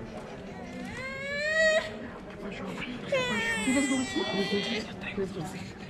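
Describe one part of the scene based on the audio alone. A baby squeals and cries loudly nearby.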